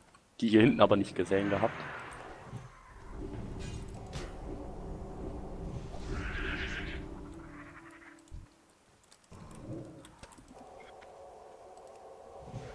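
Magic spells whoosh and crackle with a low hum.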